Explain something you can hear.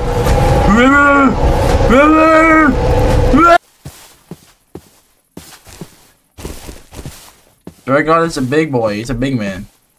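Footsteps crunch through grass.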